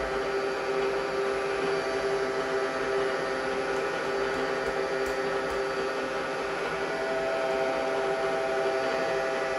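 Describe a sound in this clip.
A milling machine motor hums steadily.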